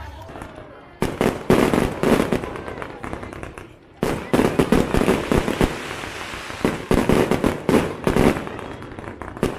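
Fireworks crackle rapidly in a dense burst.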